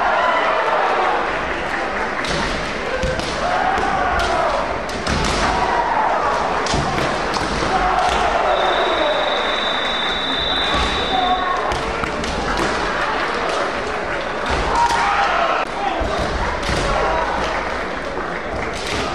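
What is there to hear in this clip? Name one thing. Kendo fencers shout loudly in an echoing hall.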